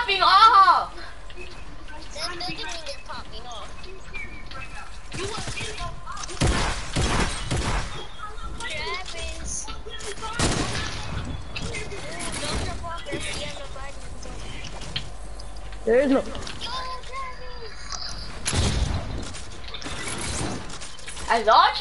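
Wooden walls and ramps snap into place with quick knocks.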